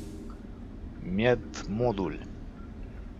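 A menu chimes as an option is selected.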